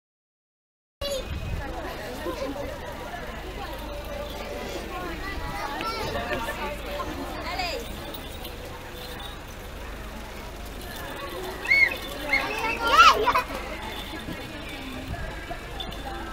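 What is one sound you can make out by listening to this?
A crowd of women and men chatter nearby outdoors.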